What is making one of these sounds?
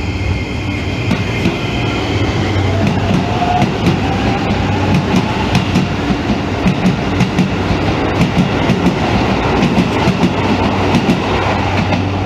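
A train pulls in alongside, its wheels clicking rhythmically over rail joints.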